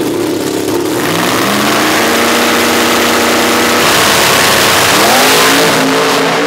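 A supercharged V8 drag car revs and launches at full throttle with a loud roar.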